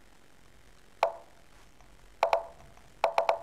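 Short wooden clicks sound as chess pieces are moved.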